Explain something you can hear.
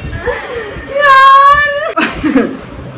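A young woman squeals in a long high-pitched laugh.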